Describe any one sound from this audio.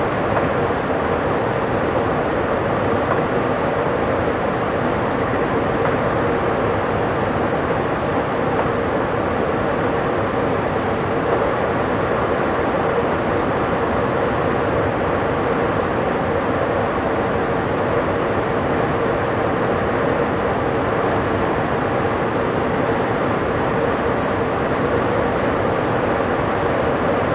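A train rumbles steadily along the tracks at high speed.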